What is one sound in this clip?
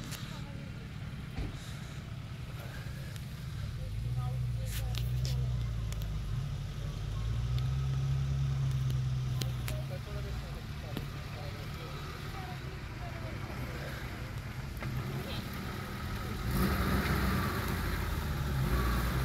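An off-road vehicle's engine rumbles and revs as it climbs a steep track.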